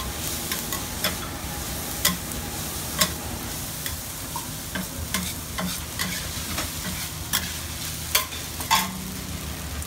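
Metal spatulas clack and scrape against a griddle.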